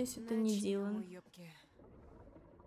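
A young woman speaks softly and tensely, close by.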